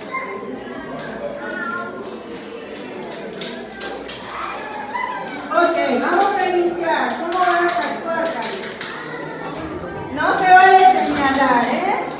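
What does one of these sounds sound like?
A crowd of men and women chatter and call out in a room.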